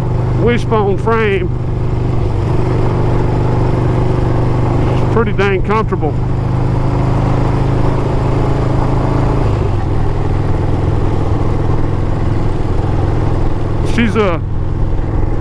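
A motorcycle engine rumbles steadily at cruising speed.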